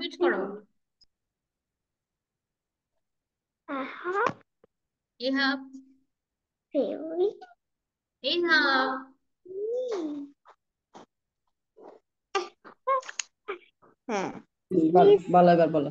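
A woman speaks clearly and slowly through an online call.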